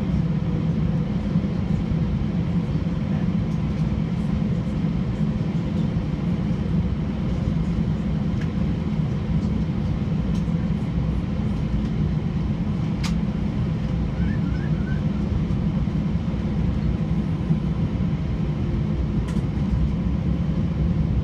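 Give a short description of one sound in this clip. An aircraft's engines rumble and hum steadily, heard from inside the cabin.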